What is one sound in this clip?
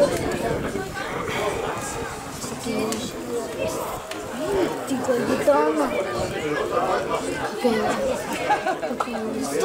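Young players call out and chatter across an open field outdoors.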